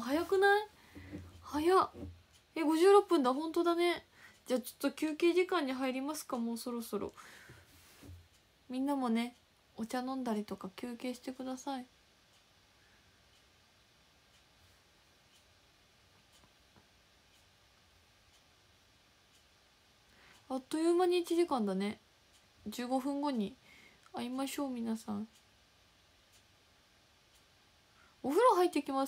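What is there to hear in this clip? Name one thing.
A young woman talks with animation close to a microphone, in bursts with long pauses.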